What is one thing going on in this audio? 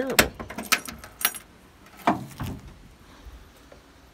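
A car trunk lid pops open with a clunk.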